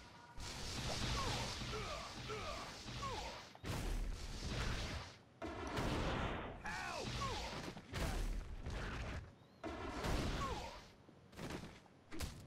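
Fiery magic blasts roar and crackle in bursts.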